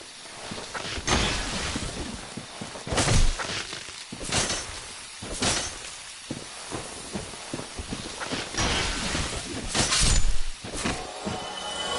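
Heavy weapon blows land with loud thuds and swishes.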